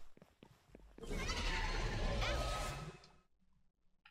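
A loud magical whoosh swells and cuts off.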